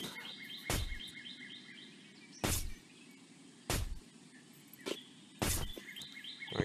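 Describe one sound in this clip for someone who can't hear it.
A blade chops into wood with sharp, repeated thuds.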